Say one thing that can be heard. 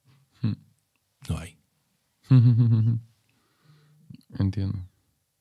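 A man speaks calmly into a nearby microphone, in short bursts.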